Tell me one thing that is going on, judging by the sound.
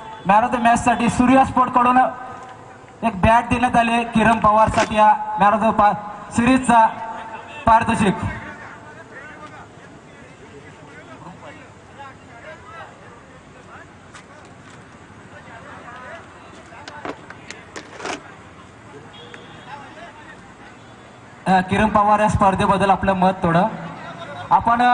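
A man announces loudly over a loudspeaker outdoors.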